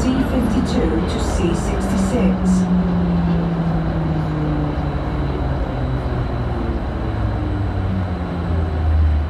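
A train rumbles along a track.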